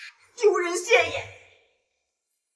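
A young woman speaks sharply.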